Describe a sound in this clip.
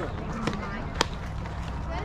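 A softball smacks into a catcher's glove.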